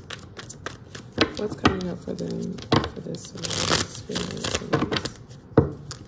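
Playing cards riffle and flutter as a deck is shuffled by hand.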